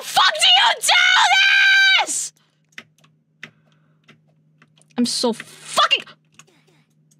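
A young woman speaks and squeals with animation into a close microphone.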